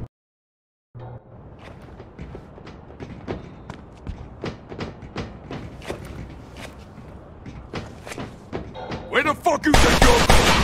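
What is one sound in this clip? Footsteps clank quickly on metal stairs.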